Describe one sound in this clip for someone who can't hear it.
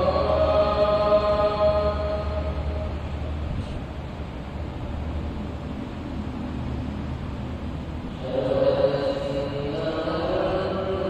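Ceiling fans whir steadily.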